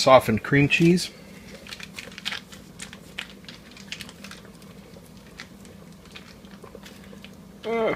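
Foil crinkles as it is unwrapped.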